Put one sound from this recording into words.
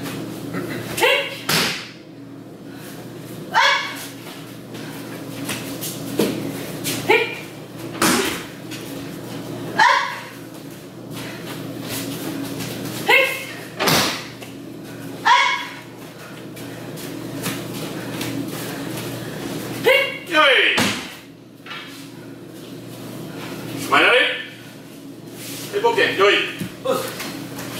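Young martial artists give short, sharp shouts in an echoing hall.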